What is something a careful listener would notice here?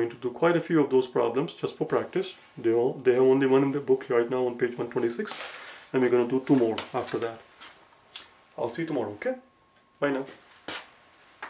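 A middle-aged man speaks calmly and clearly to a microphone close by.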